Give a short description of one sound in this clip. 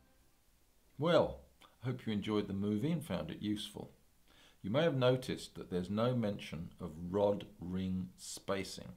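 An elderly man speaks calmly and close up.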